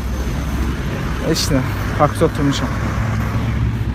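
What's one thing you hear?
A young man talks on a phone nearby.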